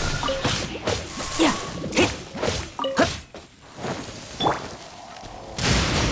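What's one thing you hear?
Magical blasts burst and crackle.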